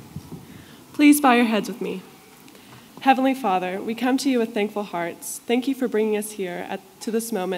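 A young woman speaks calmly into a microphone over loudspeakers in a large echoing hall.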